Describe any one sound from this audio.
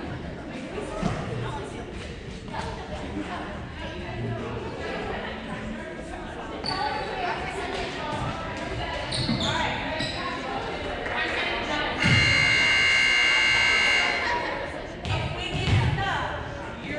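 A volleyball thumps as players hit it.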